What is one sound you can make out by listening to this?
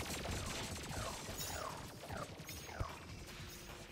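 Laser-like magic shots zap in quick falling bursts.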